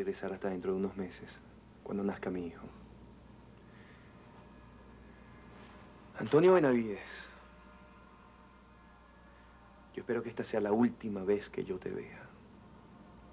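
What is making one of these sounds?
A young man speaks calmly and close by, in short bursts with pauses.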